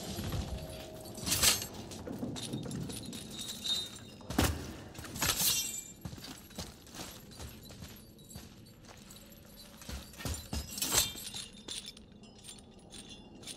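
A heavy chain rattles and clanks.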